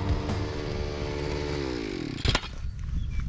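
A string trimmer engine hums steadily, then winds down and stops.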